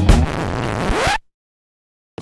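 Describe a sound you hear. A cupboard door creaks open.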